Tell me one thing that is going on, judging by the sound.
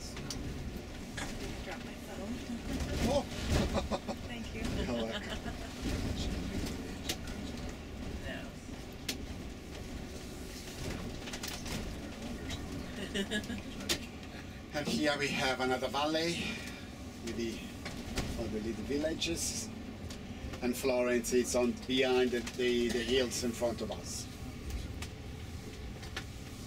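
A bus engine hums steadily as the bus drives along a road.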